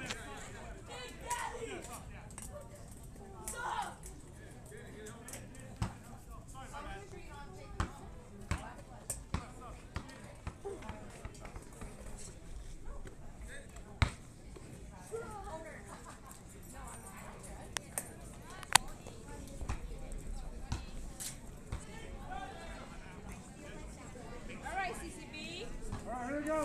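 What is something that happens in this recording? People shout and cheer across an open outdoor ball field.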